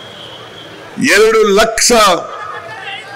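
An elderly man speaks loudly into a microphone over loudspeakers outdoors.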